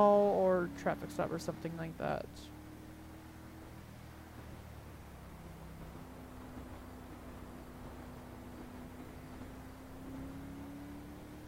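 A car engine hums steadily and slowly rises in pitch.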